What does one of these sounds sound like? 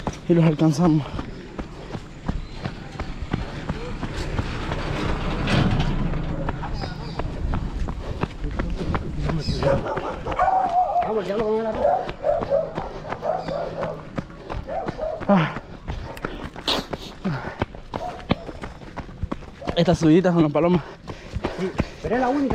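Running footsteps crunch on a dirt road.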